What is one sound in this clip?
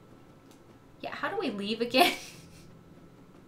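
A young woman laughs.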